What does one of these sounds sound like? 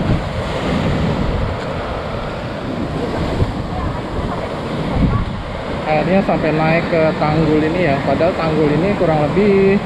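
Waves wash and crash onto a rocky shore nearby.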